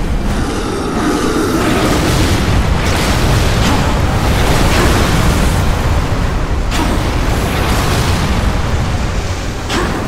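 Magical blasts crackle and whoosh.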